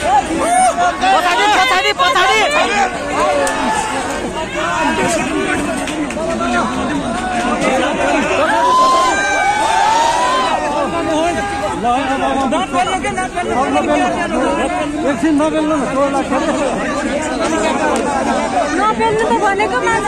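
A dense crowd of men and women shout and talk over one another up close.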